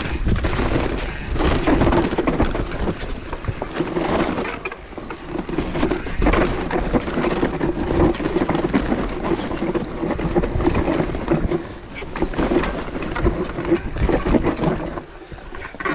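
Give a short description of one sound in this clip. Wind rushes past close by.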